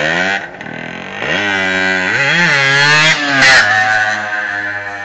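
A motorcycle engine revs loudly and roars past up close.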